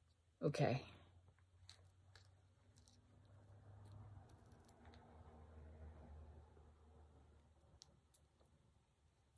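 Rings clink and tap softly as fingers handle them.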